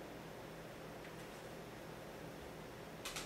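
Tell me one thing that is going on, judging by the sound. A plastic disc case clatters as it is put down.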